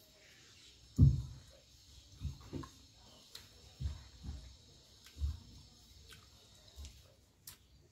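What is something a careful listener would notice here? A young woman chews food close to the microphone.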